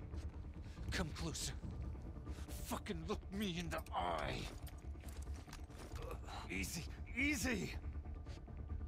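A man pleads in a strained, frightened voice close by.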